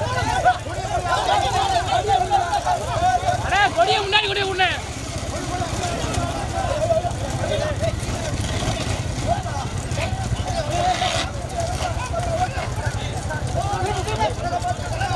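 A crowd of men shouts outdoors.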